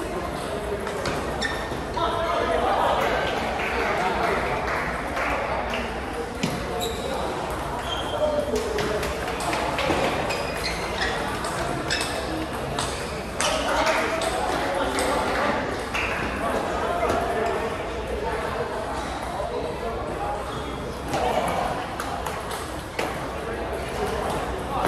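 Table tennis balls click on tables and paddles in quick rallies.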